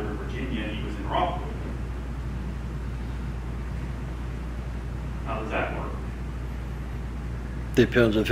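A middle-aged man speaks through a microphone in a large room, in short bursts between pauses.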